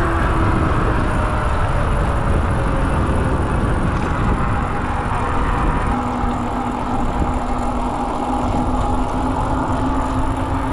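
Bicycle tyres roll steadily on smooth pavement.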